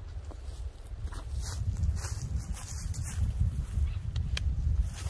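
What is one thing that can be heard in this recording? Footsteps crunch on dry leaves as a man walks closer.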